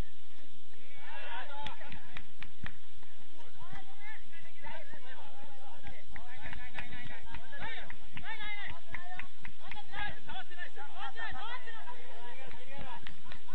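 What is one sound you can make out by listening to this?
Young players shout to each other across an open outdoor field.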